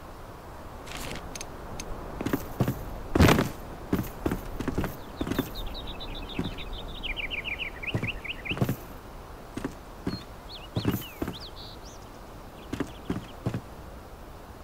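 Short clicks and soft thuds sound as building pieces are placed.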